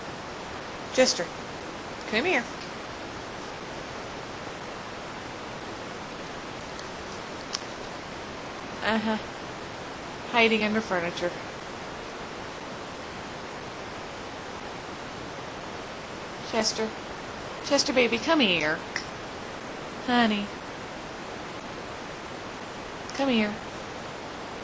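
A kitten meows repeatedly in short, high cries.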